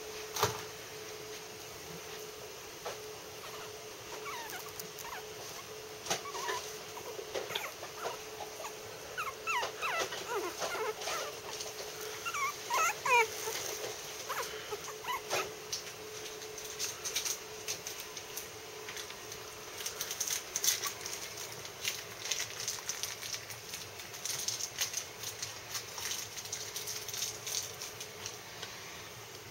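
Soft bedding rustles and crackles as small animals shift about.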